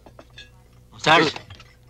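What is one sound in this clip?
A man speaks loudly and sharply.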